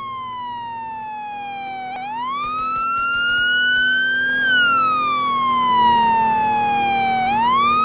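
A police siren wails loudly, rising and falling in pitch.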